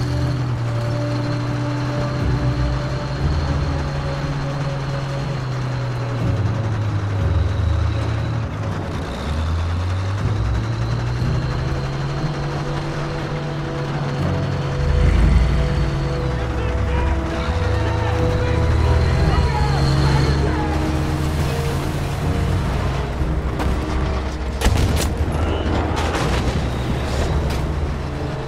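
Tank tracks clank and grind over the street.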